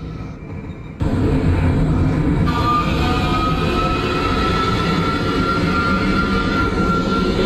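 Train wheels rumble on the track.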